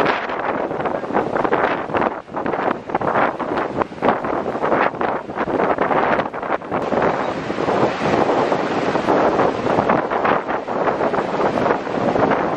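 Fast water rushes and splashes over rocks close by.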